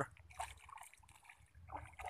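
Fish splash at the surface of the water.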